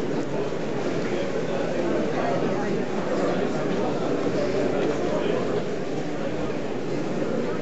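An elderly man speaks to a crowd, heard from a short distance.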